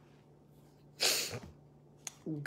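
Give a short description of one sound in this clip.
A middle-aged woman sniffles close by.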